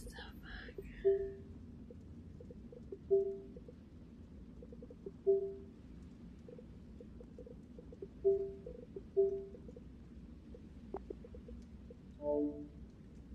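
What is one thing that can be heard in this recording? Soft electronic blips sound now and then as menu items are selected.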